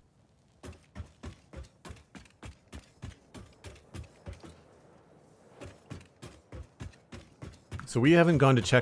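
Footsteps tap steadily on a hard metal floor.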